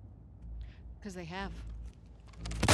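A young woman answers briefly and coldly.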